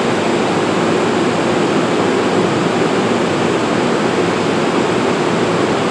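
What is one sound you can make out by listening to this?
A standing train hums and hisses steadily, echoing around a large enclosed space.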